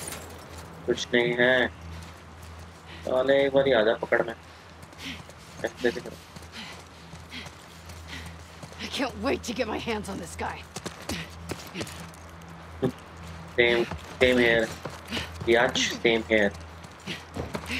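A young man talks calmly into a microphone, close by.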